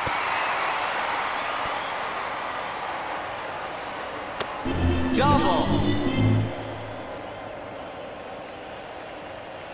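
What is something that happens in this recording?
A stadium crowd cheers and slowly quiets down.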